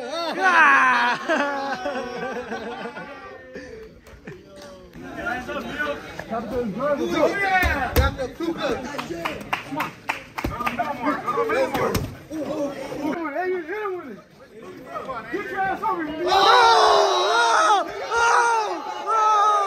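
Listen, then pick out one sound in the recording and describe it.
A crowd of young men shouts and cheers outdoors.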